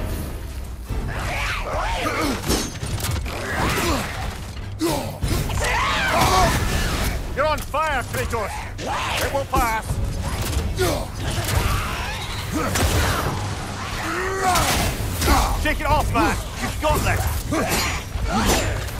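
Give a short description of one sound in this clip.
Heavy weapons clang and thud in a close fight.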